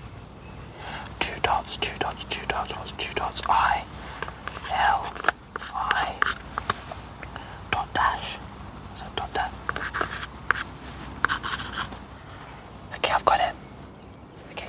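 A man talks quietly nearby.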